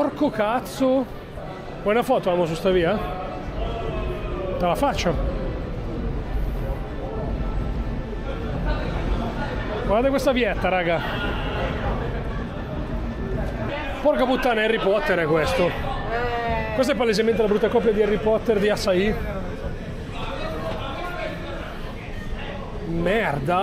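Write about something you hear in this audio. A man talks close by in a lively way.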